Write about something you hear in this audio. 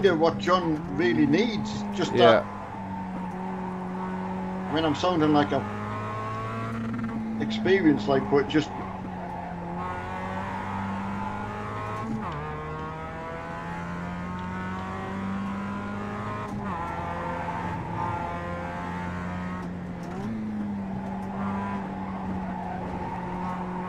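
A racing car engine drones steadily and changes pitch with gear shifts.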